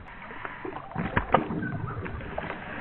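Water splashes loudly as a dog plunges in.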